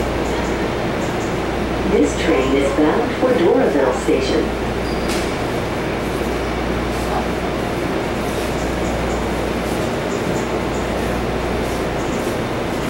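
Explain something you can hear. A train rumbles and hums steadily while riding along.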